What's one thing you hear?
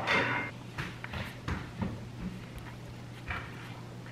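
Soft tortillas rustle and pat as hands press them down.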